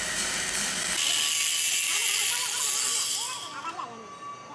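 An angle grinder whines and screeches against metal.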